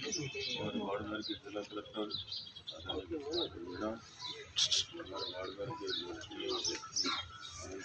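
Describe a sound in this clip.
An older man speaks calmly to a seated group.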